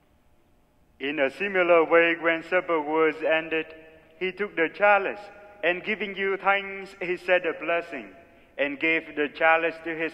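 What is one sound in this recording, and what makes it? A man chants a melody through a microphone in a large echoing hall.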